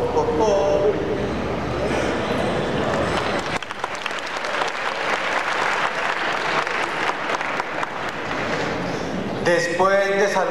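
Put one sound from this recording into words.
A crowd claps and cheers.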